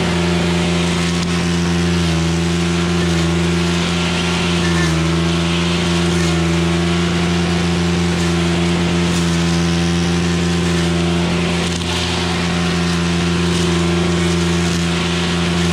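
A string trimmer engine drones loudly and steadily close by.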